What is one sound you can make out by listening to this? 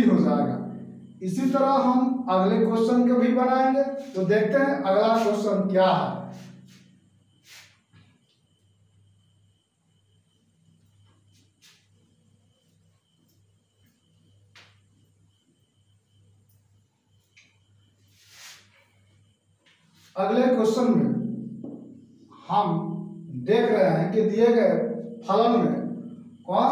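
A young man talks calmly, explaining.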